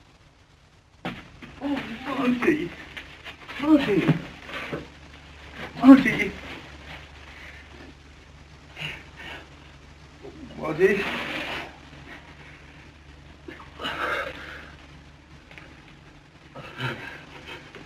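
A young man groans and sobs in pain.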